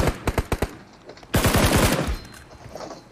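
Rapid gunfire crackles in a game.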